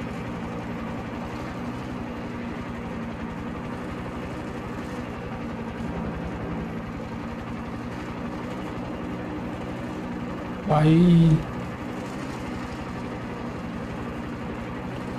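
A helicopter's rotor thumps steadily close by.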